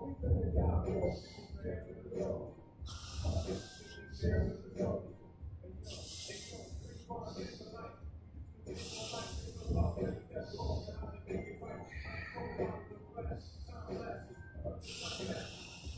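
A man breathes out sharply in bursts.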